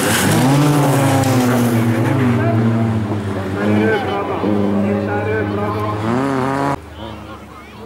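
A car engine revs loudly and unevenly.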